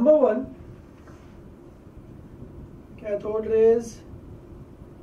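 A man speaks calmly and clearly, as if teaching.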